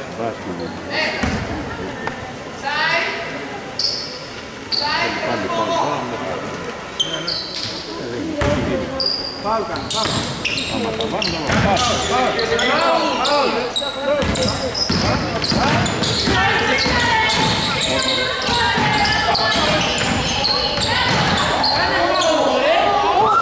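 Basketball shoes squeak sharply on a wooden court in a large echoing hall.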